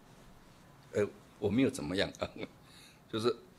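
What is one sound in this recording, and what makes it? An elderly man laughs softly.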